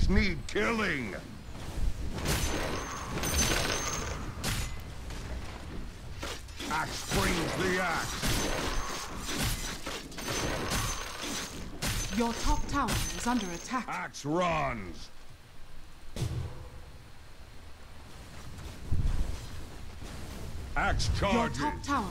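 Weapons clash and magic blasts crackle in a fight.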